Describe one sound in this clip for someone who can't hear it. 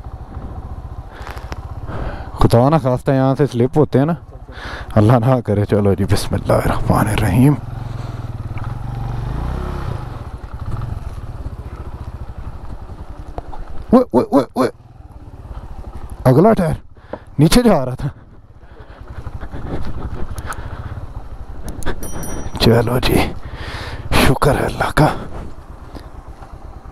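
A motorcycle engine rumbles at low speed.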